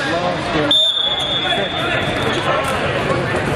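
A referee's whistle blows once, sharp and steady.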